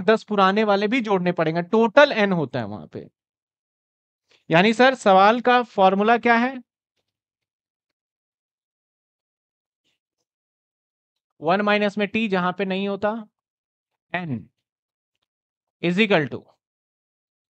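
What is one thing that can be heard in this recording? A man lectures calmly into a clip-on microphone, in bursts with pauses.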